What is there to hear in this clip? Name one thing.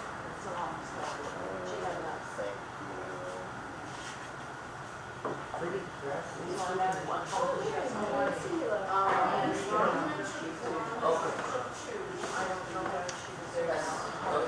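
A woman talks casually nearby.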